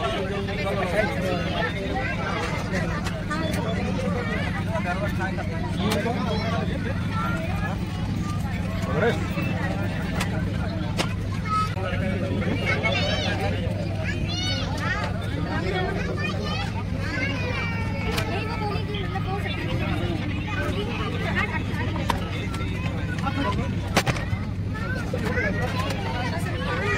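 Many passengers chatter nearby.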